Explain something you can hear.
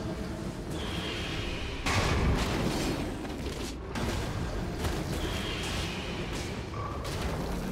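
Magic spell effects whoosh and crackle in a fast fight.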